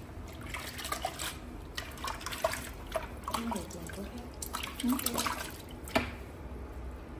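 Water splashes and sloshes in a basin as feet are washed.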